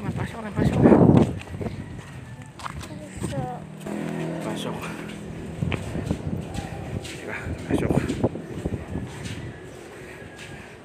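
Slippers slap on hard ground as people walk.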